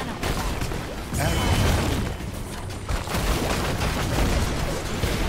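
Game spells and weapons clash and burst in a busy fight.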